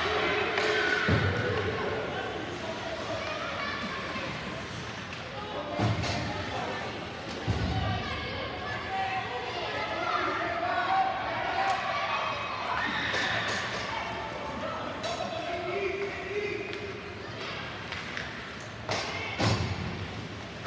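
Ice skates scrape and glide across a rink.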